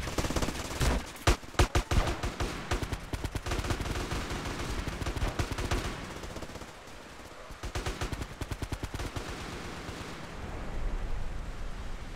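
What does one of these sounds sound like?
Footsteps slap quickly on pavement as someone runs.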